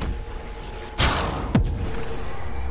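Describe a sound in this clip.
A magical blast bursts with a loud whoosh.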